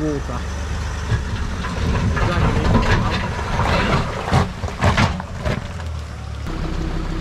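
Tyres crunch and scrape over rocks.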